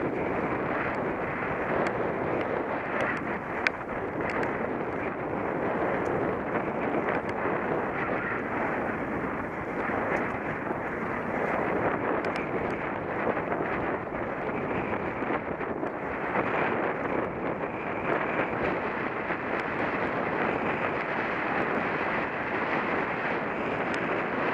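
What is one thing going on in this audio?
Wind buffets the microphone steadily outdoors.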